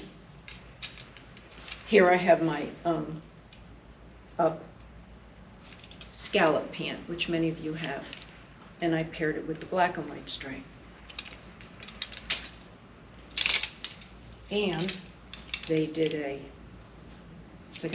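Clothes hangers clatter on a metal rack.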